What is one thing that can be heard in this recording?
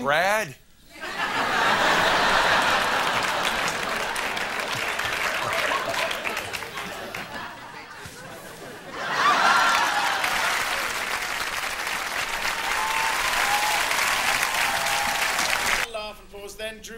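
A studio audience laughs and cheers loudly.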